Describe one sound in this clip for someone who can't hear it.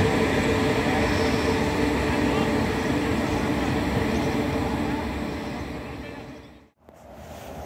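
A train rumbles slowly into a station.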